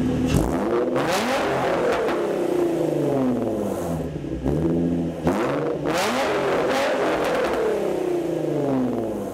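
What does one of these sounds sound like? A car engine revs hard through loud exhausts, rising and falling in pitch again and again.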